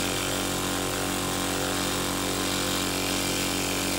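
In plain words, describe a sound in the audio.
A small air-driven engine whirs steadily.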